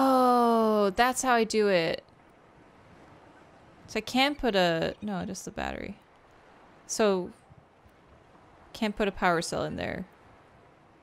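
A young woman talks with animation into a close microphone, in short bursts.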